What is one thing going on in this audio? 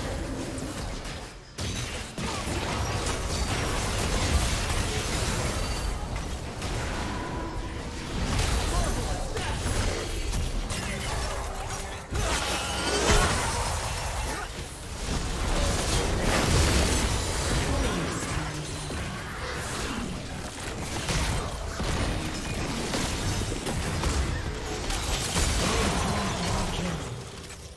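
Battle effects crackle and clash as magic spells and weapon strikes hit.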